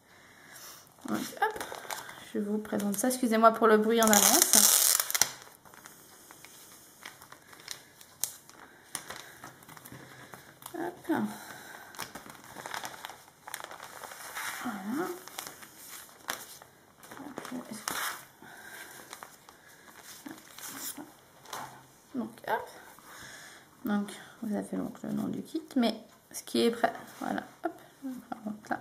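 Paper and a plastic sleeve crinkle and rustle as they are handled.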